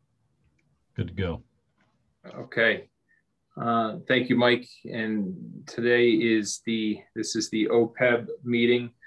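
A man speaks over an online call, calmly and with some animation.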